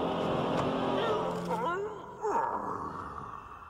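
A mummy creature lets out a rising and falling wailing moan.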